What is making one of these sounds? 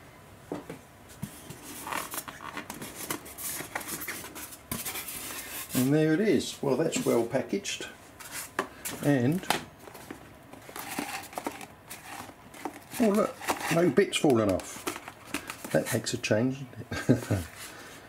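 Hands rub and scrape against a foam packaging tray.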